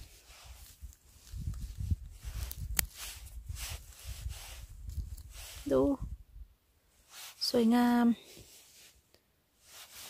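Scissors snip through mushroom stems close by.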